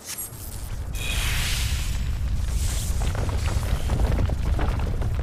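Electric crackling bursts around a monster.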